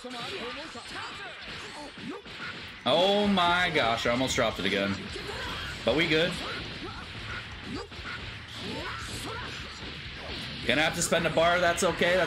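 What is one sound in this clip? Punches and kicks land with sharp, rapid hits.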